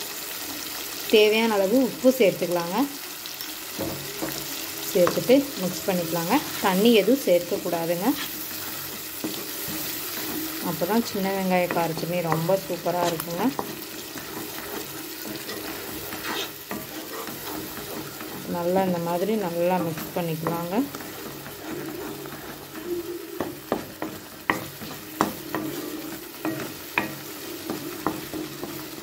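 Food sizzles in hot oil in a pan.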